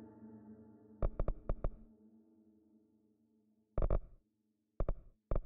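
Short electronic menu blips sound in quick bursts.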